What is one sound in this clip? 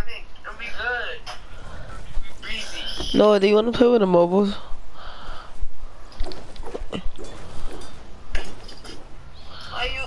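A pickaxe strikes metal with sharp clangs.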